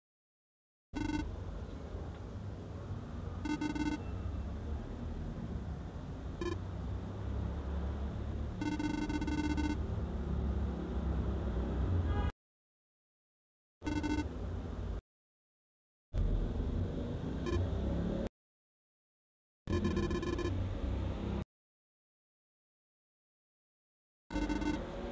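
Electronic dialogue blips beep in short quick bursts.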